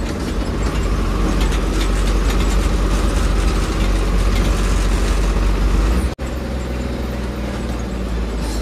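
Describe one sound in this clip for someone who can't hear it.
Loose metal parts of a vehicle cab rattle and clatter.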